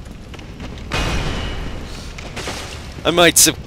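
Fire bursts with a roaring whoosh.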